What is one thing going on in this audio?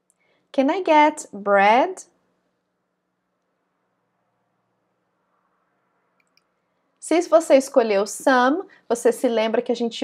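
A young woman speaks clearly and calmly into a close microphone.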